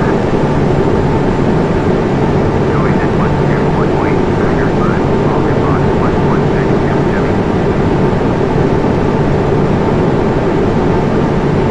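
Jet engines drone with a steady, loud roar.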